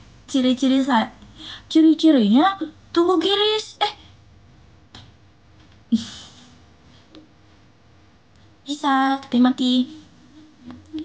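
A young woman sings softly close to the microphone.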